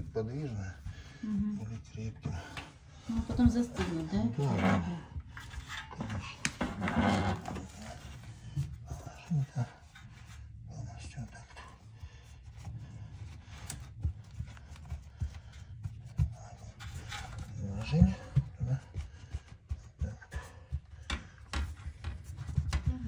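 A flexible plastic pipe rubs and creaks as it is bent by hand.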